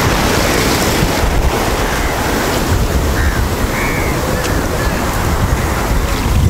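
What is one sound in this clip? Water splashes around a man's legs as he wades through the surf.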